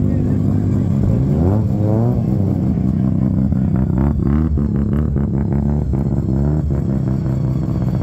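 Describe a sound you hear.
Car engines rev with rising and falling pitch.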